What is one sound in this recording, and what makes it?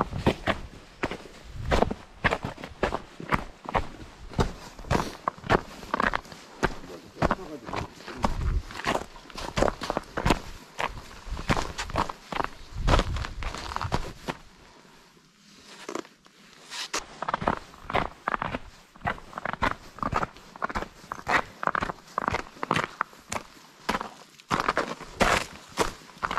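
Footsteps crunch on dry leaves and snow.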